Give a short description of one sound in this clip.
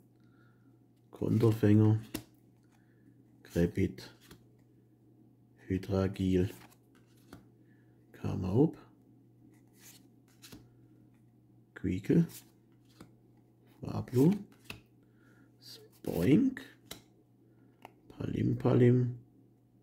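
Playing cards slide and flick against each other in a hand.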